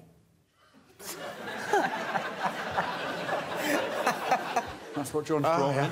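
A small group of men and women laugh.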